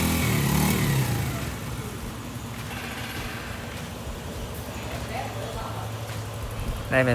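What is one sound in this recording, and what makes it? A small motorcycle engine idles with a low steady putter.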